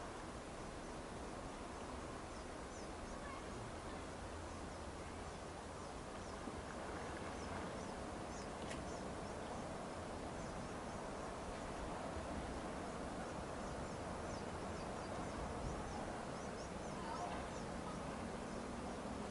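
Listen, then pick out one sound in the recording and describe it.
Wind blows steadily across open ground, rumbling against the microphone.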